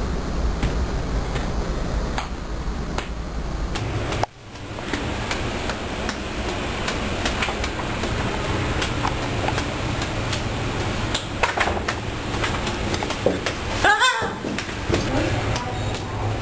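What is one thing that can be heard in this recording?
Juggling clubs clack as they are caught.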